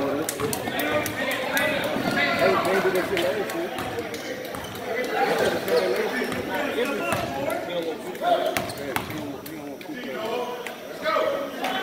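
Basketball shoes squeak sharply on a hard floor in a large echoing gym.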